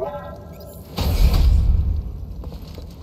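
A heavy door slides open with a loud rumble.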